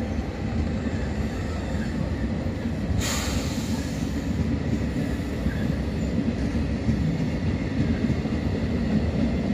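A passenger train rolls past with a steady low rumble.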